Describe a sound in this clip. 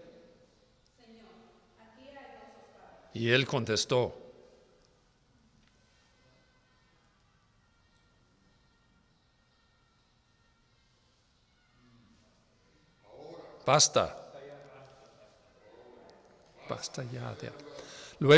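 An adult speaks slowly through a microphone in an echoing hall, with long pauses.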